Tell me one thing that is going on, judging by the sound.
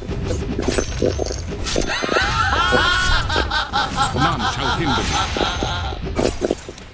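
Fantasy battle sound effects clash and zap in quick bursts.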